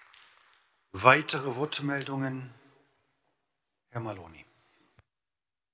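A second middle-aged man speaks briefly into a microphone.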